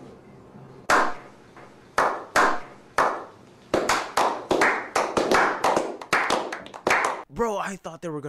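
A small group of men claps, slowly at first and then faster.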